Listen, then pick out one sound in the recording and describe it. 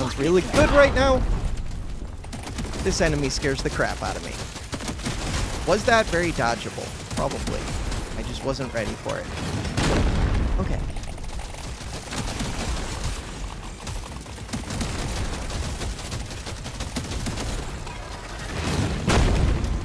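Rapid gunfire crackles and blasts throughout.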